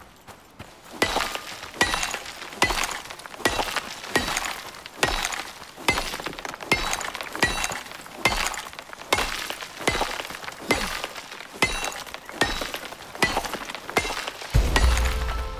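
A pickaxe strikes rock again and again with sharp, ringing knocks.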